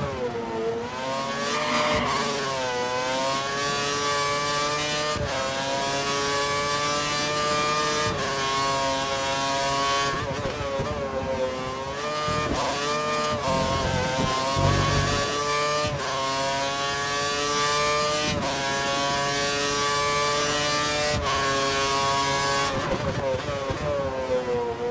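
A racing car engine screams at high revs, rising and dropping in pitch with each gear change.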